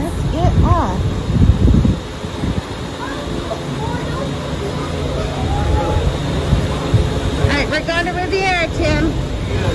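Footsteps shuffle along a hard walkway.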